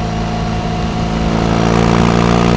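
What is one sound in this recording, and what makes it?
A motorcycle engine revs up louder.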